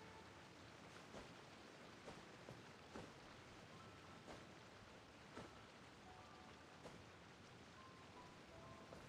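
Soft scrapes and taps sound as a character climbs a rock face.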